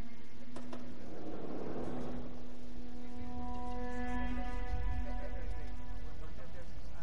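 A van's sliding door rolls open.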